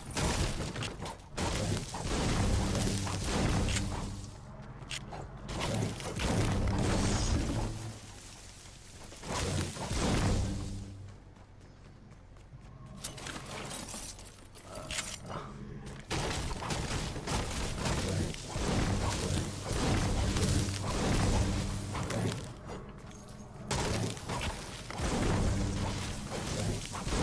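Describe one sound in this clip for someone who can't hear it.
A pickaxe strikes wood and stone in quick repeated blows.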